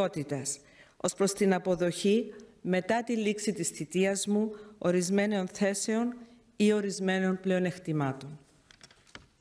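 A woman speaks calmly and formally into a microphone in a large echoing hall.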